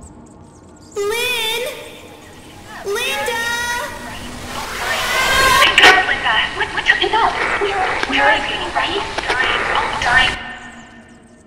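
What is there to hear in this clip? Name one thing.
A mobile phone plays a warbling, eerie distorted ringing that grows louder and harsher.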